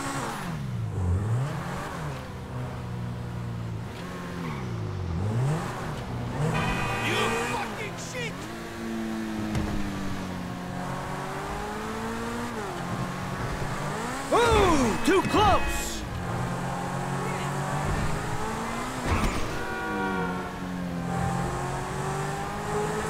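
A sports car engine roars and revs up and down as the car accelerates and shifts gears.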